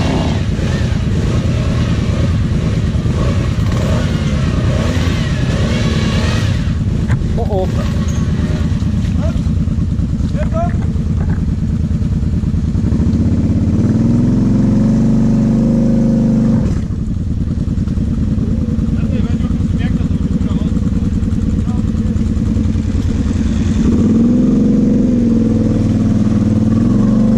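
A quad bike engine idles and rumbles close by, revving up now and then.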